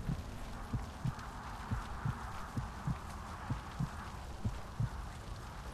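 Distant explosions rumble and thud.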